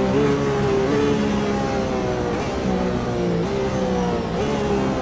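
A racing car engine roars at high revs, climbing steadily and dropping in pitch with each gear change.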